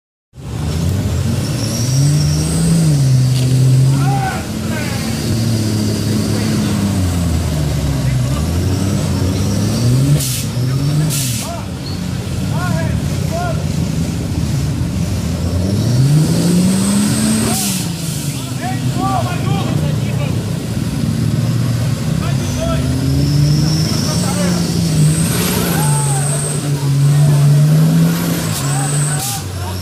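An off-road vehicle's engine roars and revs up and down as it climbs through mud.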